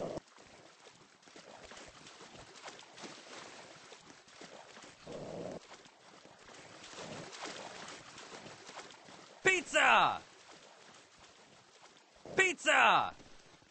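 Water splashes softly as a swimmer paddles.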